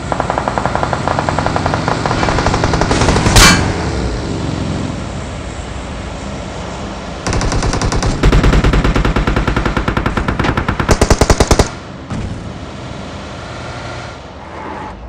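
A car engine roars as the car drives over rough ground.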